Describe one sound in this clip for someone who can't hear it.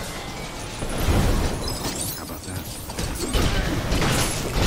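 A laser beam blasts with a crackling hiss.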